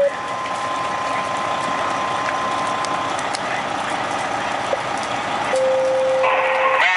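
Flames roar from a burning roof.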